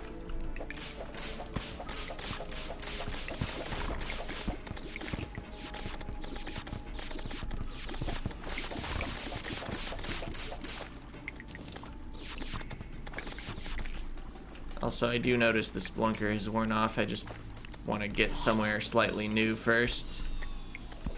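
Quick video game hit and clatter sound effects ring out in rapid bursts.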